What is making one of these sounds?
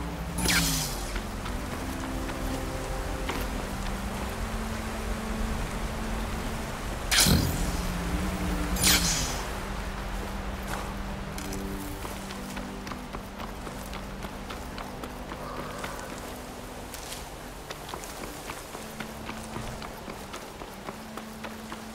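Footsteps crunch quickly over rocky, gravelly ground.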